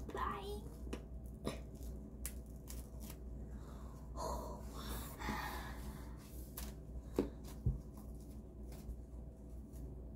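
A face mask peels off skin with a soft crinkle.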